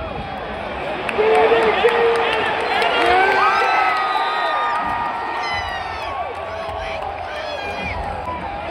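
A huge crowd roars and cheers loudly, then slowly settles.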